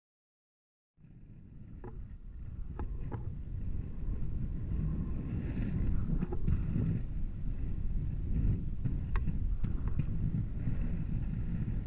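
Inline skate wheels roll and rumble over rough asphalt.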